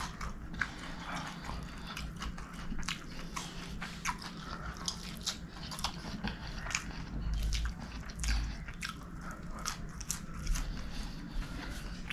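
Fingers squish and mix soft rice close by.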